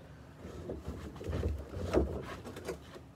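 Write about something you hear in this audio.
Dust and debris rattle into a bin.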